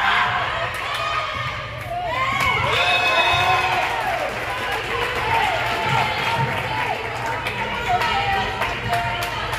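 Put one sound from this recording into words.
A volleyball is hit with a sharp smack.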